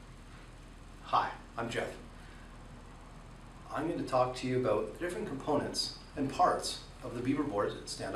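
A man speaks calmly to the listener, close by.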